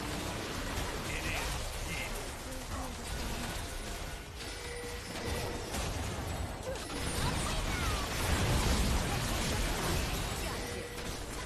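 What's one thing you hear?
Game spell effects crackle and whoosh in bursts.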